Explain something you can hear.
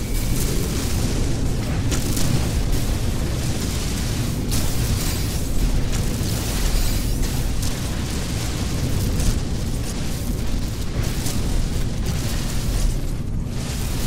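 Lasers fire in rapid bursts.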